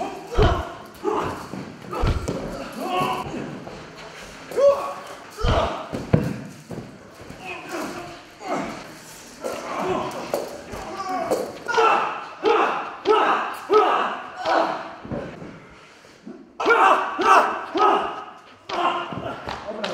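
Bodies thud onto a padded mat.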